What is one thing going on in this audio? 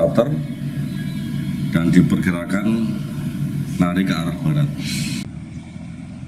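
A middle-aged man speaks calmly and formally, close to a microphone.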